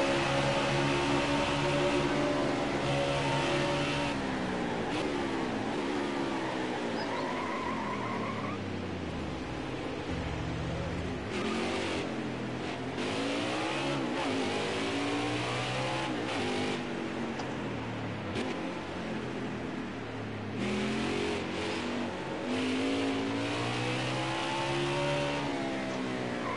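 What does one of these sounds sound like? A NASCAR stock car's V8 engine roars, revving up and down through the gears.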